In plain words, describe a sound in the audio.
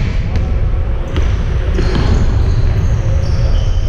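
A basketball bounces on the floor in a large echoing hall.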